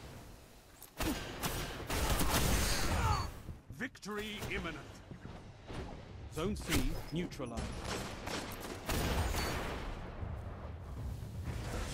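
Gunshots fire in rapid bursts in a video game.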